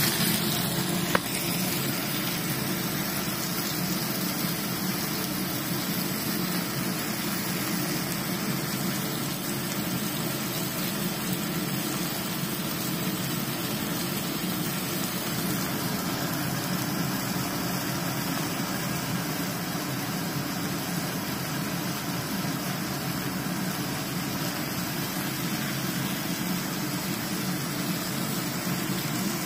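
Food sizzles and spatters steadily in a hot frying pan.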